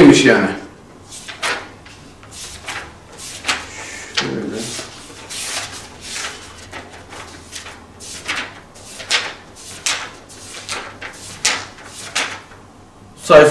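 Book pages rustle and flip quickly.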